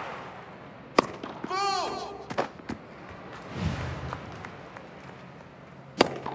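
A tennis ball is struck sharply by a racket several times.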